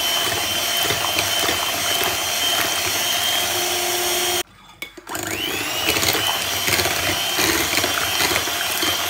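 An electric hand mixer whirs steadily, stops briefly, then spins back up.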